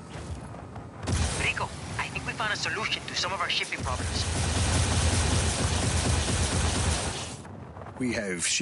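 Wind rushes loudly past a gliding flyer.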